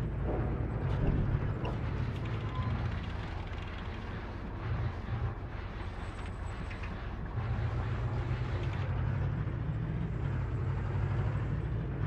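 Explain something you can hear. A heavy armoured vehicle's engine rumbles deeply and steadily.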